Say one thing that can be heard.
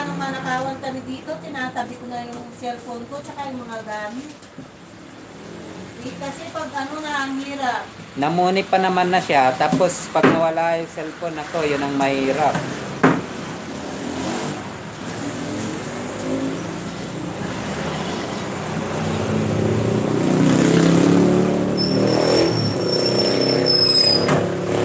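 A knife cuts through meat and taps on a wooden board.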